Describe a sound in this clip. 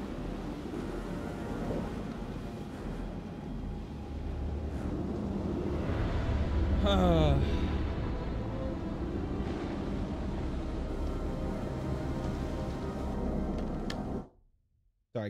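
A deep underwater rumble drones on.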